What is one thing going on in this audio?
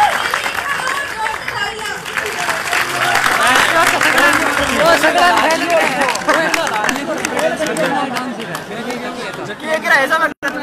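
A crowd of young people cheers and shouts loudly nearby.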